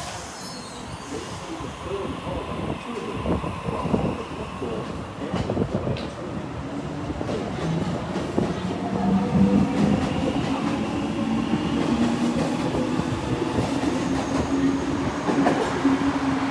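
A train pulls away, its motors whining and rising in pitch.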